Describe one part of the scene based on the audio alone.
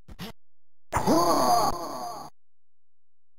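A short electronic jingle plays.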